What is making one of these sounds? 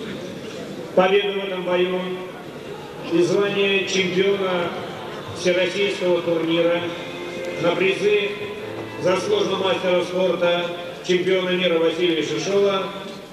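A man announces loudly over a loudspeaker.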